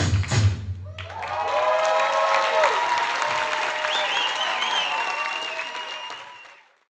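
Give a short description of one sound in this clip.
An audience cheers, whistles and applauds in a large echoing hall.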